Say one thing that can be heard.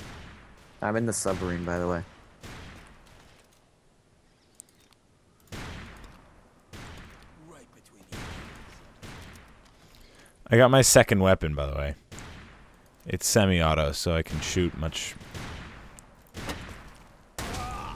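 A rifle fires single sharp shots.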